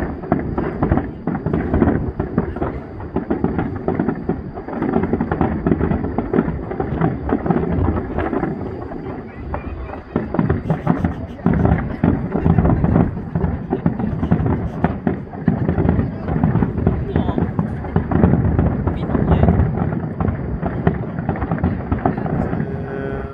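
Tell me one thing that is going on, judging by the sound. Fireworks boom and crackle continuously in the open air.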